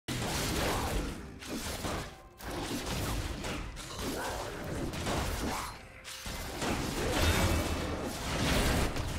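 Video game combat effects clash, whoosh and crackle.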